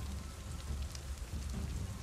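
Flames crackle and burn close by.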